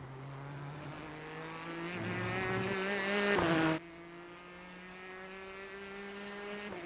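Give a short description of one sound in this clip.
A race car engine roars at high revs, climbing in pitch and then dropping sharply as the gear changes.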